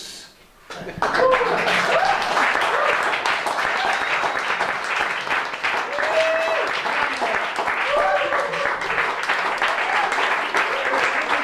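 A band plays lively music in a room.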